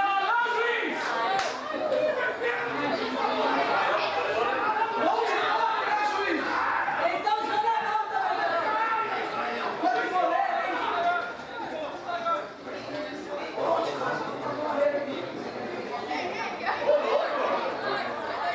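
Young male football players talk and call out to each other outdoors.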